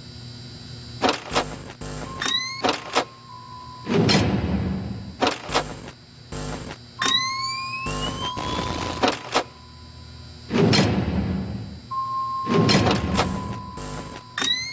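A monitor panel swooshes up and down several times, with clicks.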